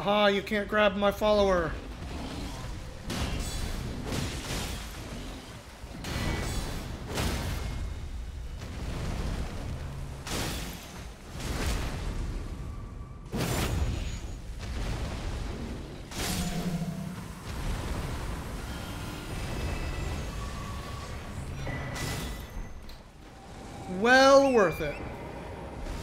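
A large creature roars loudly.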